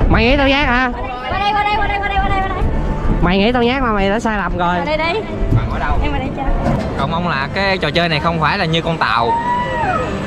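A young woman talks excitedly close by.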